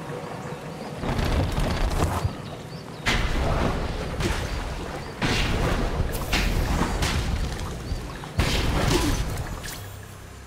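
A small creature swoops through the air with loud whooshes.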